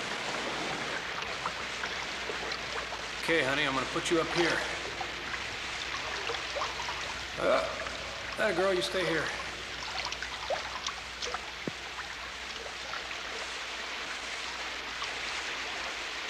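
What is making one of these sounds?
Water sloshes and splashes around people wading.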